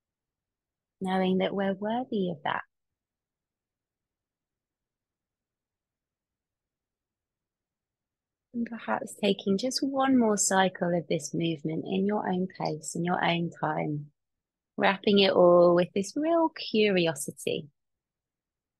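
A young woman speaks calmly and warmly, close through a microphone on an online call.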